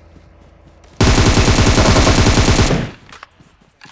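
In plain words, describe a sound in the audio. Rapid gunfire rattles loudly in a burst.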